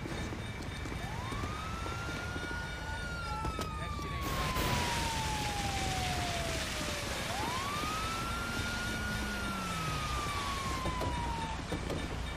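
A siren wails in rising and falling sweeps.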